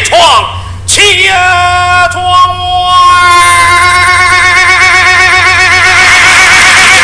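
Two young men sing together, holding long notes.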